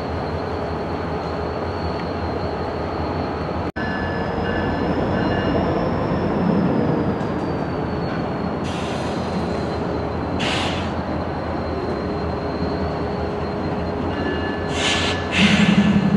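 A diesel locomotive engine idles with a steady low rumble.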